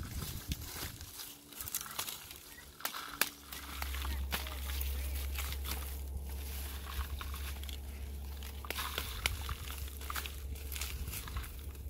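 Dry stalks crackle and rustle as a man pulls at them.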